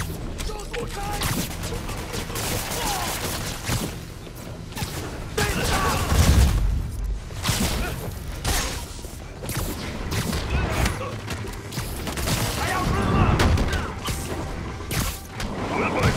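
Punches and kicks thud in a fast brawl.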